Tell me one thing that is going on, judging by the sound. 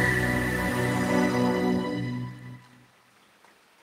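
A wooden end-blown flute plays a held note that fades out.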